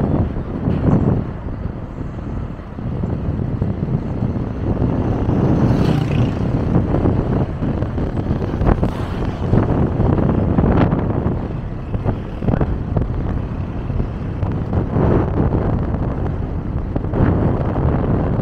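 A car engine hums steadily while driving on a road.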